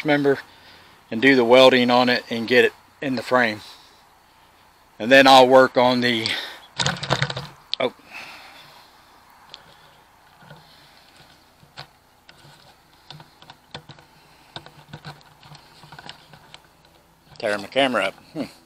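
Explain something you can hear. An older man talks calmly, close to the microphone.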